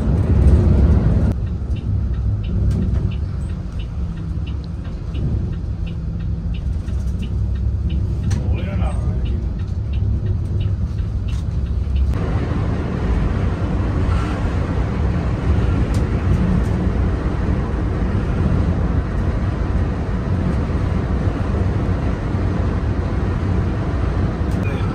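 A heavy truck engine rumbles steadily from inside the cab.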